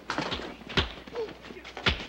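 Fists thud in a scuffle.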